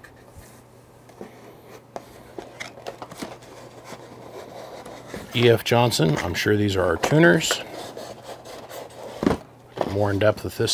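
Cardboard and packing material rustle and crinkle as items are handled.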